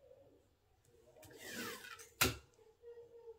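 Sticky tape is pulled off a dispenser and snapped off.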